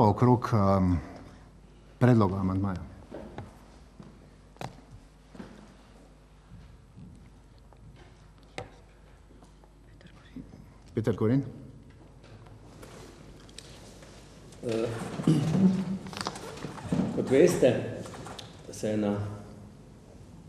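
A middle-aged man speaks calmly into a microphone, in bursts with pauses.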